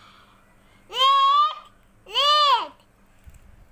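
A young girl speaks up close in a high, sing-song voice.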